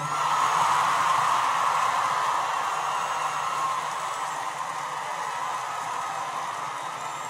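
A woman speaks into a microphone over a loudspeaker.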